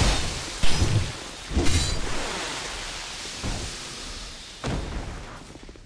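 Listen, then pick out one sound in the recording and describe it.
Footsteps clank on metal ladder rungs.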